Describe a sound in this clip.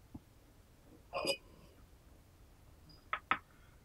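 A clay teapot lid clinks against the pot.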